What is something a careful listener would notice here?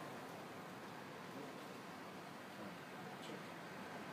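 A laptop keyboard clicks as someone types.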